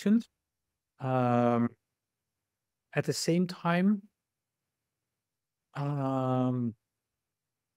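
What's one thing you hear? A man chants long, steady vocal tones in short bursts, heard over an online call.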